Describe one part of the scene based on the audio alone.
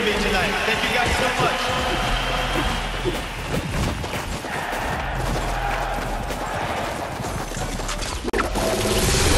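Electronic dance music plays loudly with a steady beat.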